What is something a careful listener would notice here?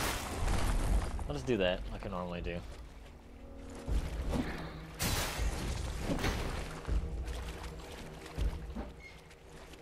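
Water splashes underfoot.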